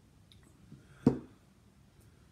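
A glass knocks down onto a hard surface.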